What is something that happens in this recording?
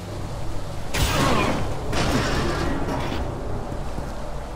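A heavy lid scrapes and slides open.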